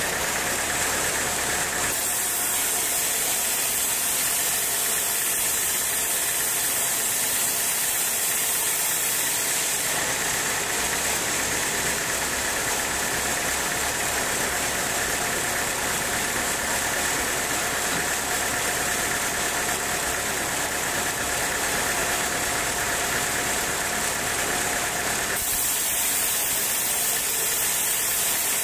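A sawmill machine hums and rattles steadily.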